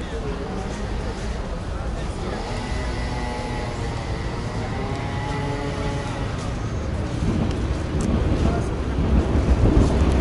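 Plastic packaging crinkles as a hand picks up a packet.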